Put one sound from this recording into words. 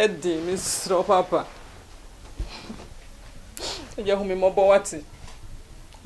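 A woman sobs and wails close by.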